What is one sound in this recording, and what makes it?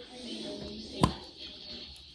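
A plastic cap snaps shut with a click.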